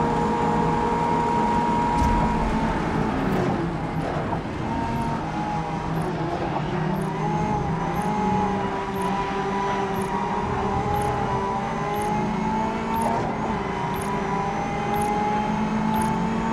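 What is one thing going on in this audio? A racing car engine roars loudly, rising and falling in pitch.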